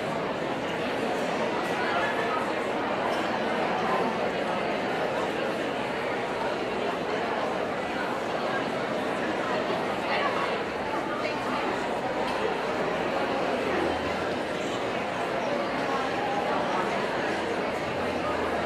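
A large concert band plays in an echoing hall.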